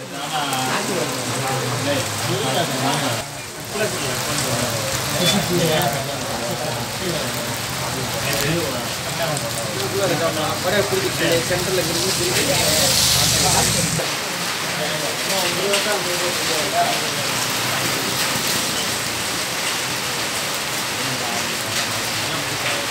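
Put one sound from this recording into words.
Rain falls steadily and patters on wet ground.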